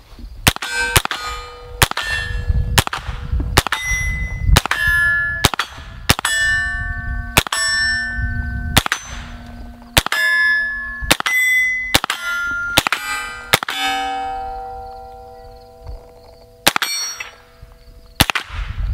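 Steel targets ring out after hits.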